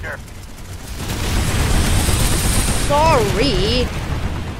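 A heavy vehicle engine rumbles and roars.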